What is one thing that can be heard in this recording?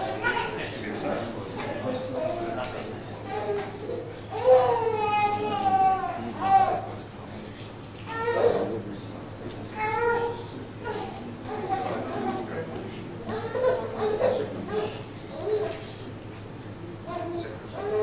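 Several men talk quietly among themselves in an echoing hall.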